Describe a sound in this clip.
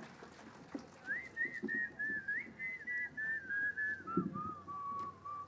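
A young man calls out in a loud, chanting voice into a microphone.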